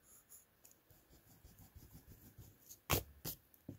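An eraser rubs against paper.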